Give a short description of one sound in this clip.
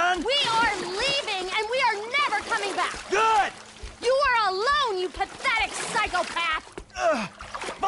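A woman shouts angrily.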